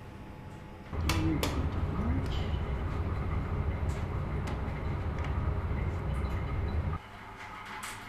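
A ventilation fan hums steadily, then cuts off.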